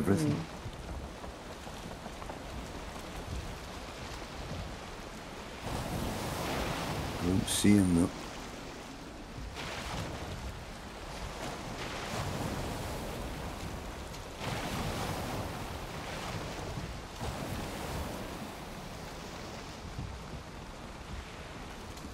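Stormy waves crash and surge against a wooden boat.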